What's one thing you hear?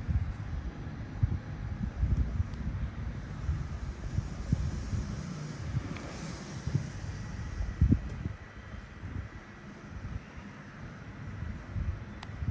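Rubber gloves rub softly against skin.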